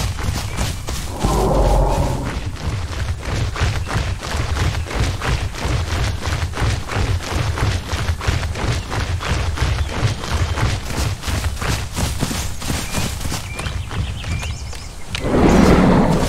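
Heavy footsteps of a large creature thud in quick rhythm.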